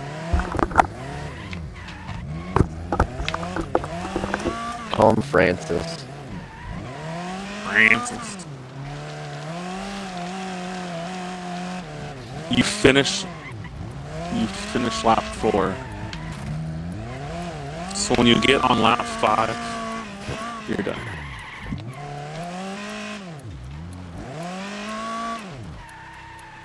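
A racing car engine revs and whines up and down.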